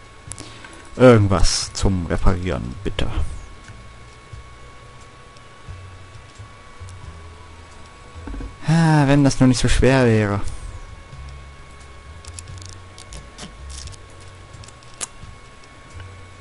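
Soft clicks sound as menu selections change.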